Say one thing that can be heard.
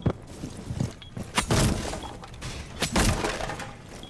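Wooden boards splinter and crack apart.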